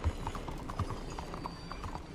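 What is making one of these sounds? Wagon wheels rattle over cobblestones.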